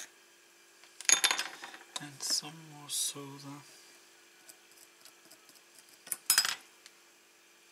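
Small metal tools clink and rattle as they are handled on a hard surface.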